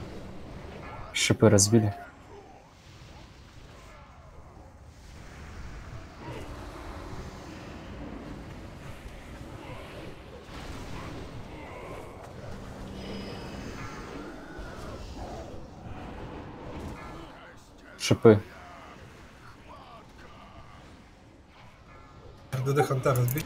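Spell effects and combat sounds clash and crackle throughout.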